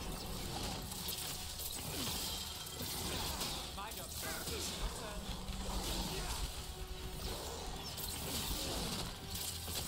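Blades clash and strike during a fight.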